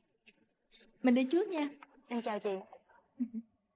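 A woman speaks in a friendly tone nearby.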